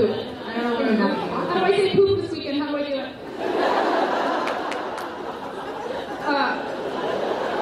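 A young woman laughs on a stage.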